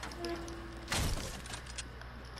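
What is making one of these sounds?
A pickaxe strikes a wall with a sharp knock.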